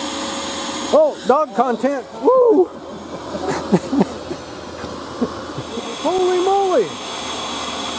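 A dog yelps and barks excitedly.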